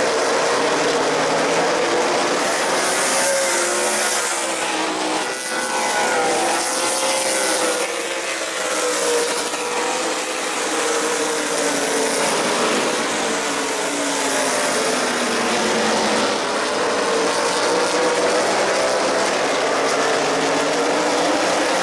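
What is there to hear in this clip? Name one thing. A pack of race car engines roars loudly around an oval track.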